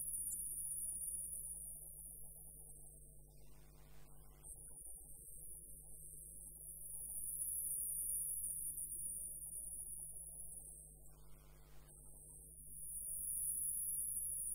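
A wood lathe motor hums.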